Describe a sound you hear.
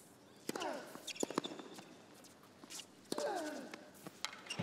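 A man grunts loudly as he hits the ball.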